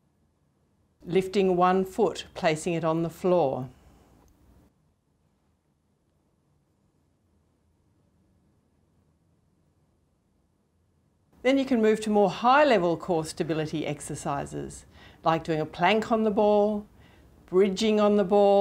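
A middle-aged woman speaks calmly and clearly, close to a microphone.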